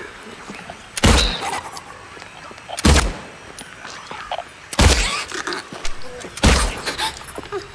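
A pistol fires loud gunshots that echo down a corridor.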